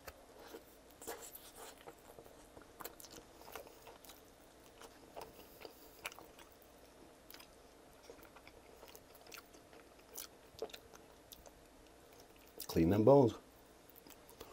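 A man chews a sauced chicken wing with wet mouth sounds close to the microphone.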